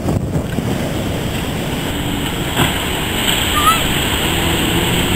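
Waves break and surge in the sea.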